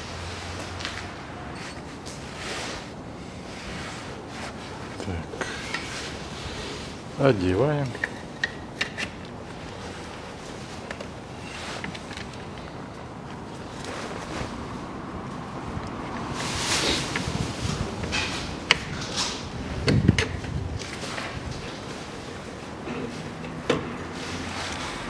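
A plastic sheet rustles.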